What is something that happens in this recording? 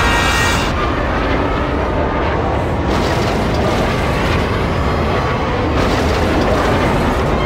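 Racing pod engines roar and whine loudly at high speed.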